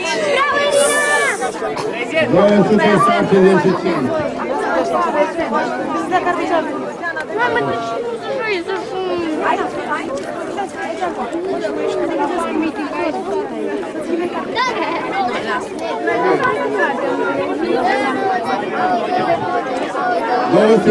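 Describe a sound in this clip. A crowd of adults and children chatters in the background.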